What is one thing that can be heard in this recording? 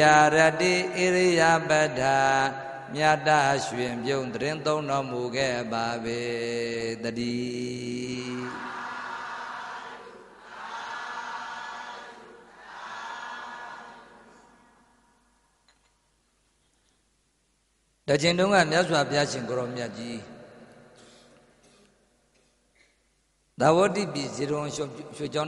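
An elderly man chants steadily into a microphone, heard through a loudspeaker.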